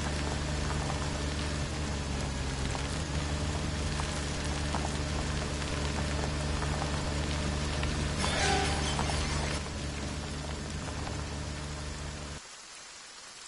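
A car engine hums steadily as the car drives along.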